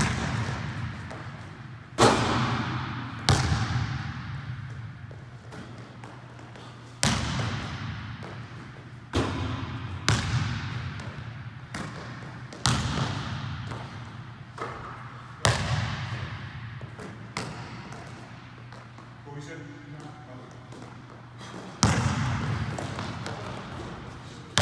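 A basketball hits the backboard and rim.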